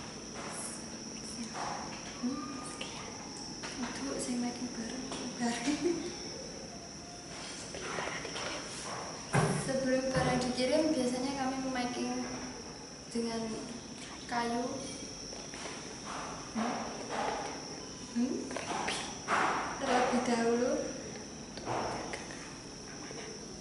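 A young woman speaks cheerfully into a close microphone.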